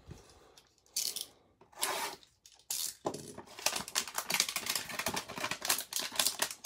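Plastic wrap crinkles and rustles as hands handle a sealed box.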